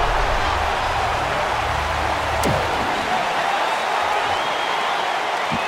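Punches thud dully against a body.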